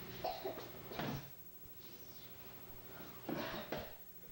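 A body thuds onto a mat floor.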